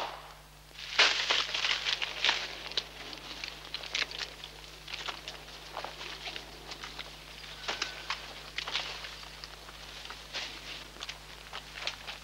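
Branches snap and leaves rustle as men push through dense undergrowth.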